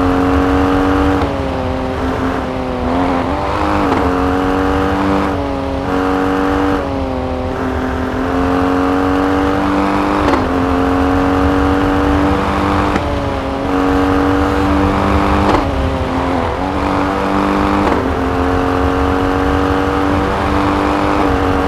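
Tyres crunch over a snowy track.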